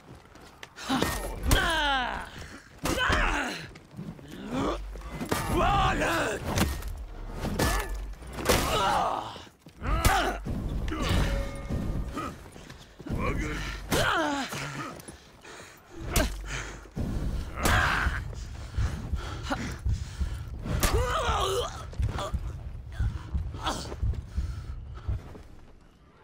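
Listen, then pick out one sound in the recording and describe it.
Steel weapons clash and strike with sharp metallic blows.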